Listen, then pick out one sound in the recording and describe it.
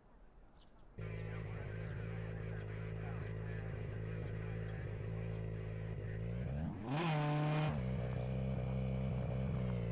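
A rally car engine idles with a low, steady rumble.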